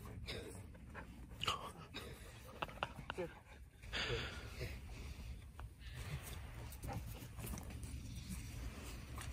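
A dog's paws patter on sand.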